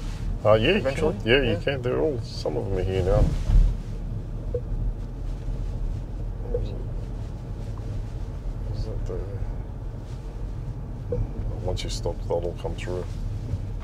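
A man speaks calmly close by inside a car.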